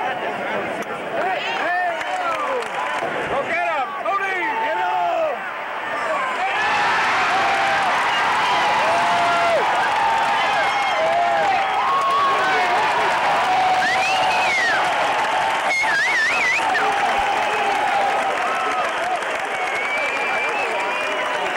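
Fans in a stadium crowd whistle shrilly.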